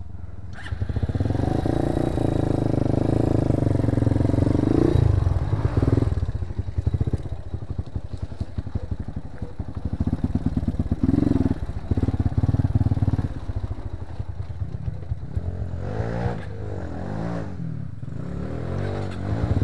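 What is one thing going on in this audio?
A motorcycle engine revs and putters close by, rising and falling.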